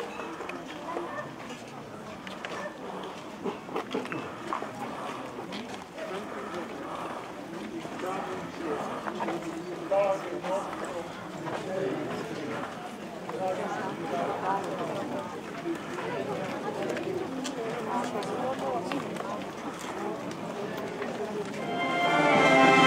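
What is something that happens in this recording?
A crowd of men and women murmurs and chatters outdoors nearby.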